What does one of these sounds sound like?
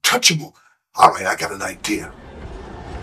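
A man laughs loudly and talks excitedly into a phone.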